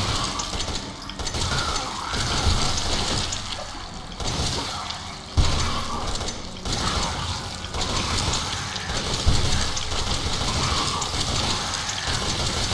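A pistol fires shot after shot in a tunnel that echoes.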